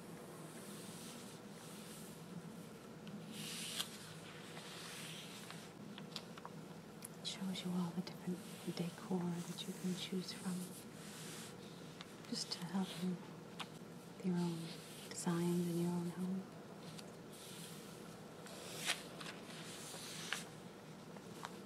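Fingertips brush across a glossy magazine page.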